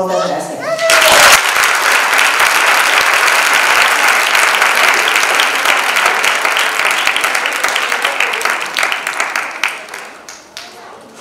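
An audience applauds loudly in an echoing hall.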